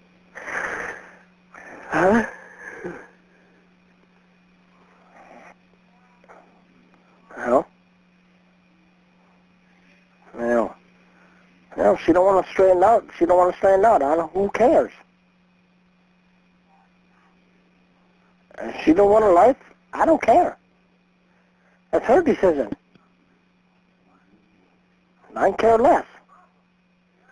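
A woman talks over a phone line in short bursts.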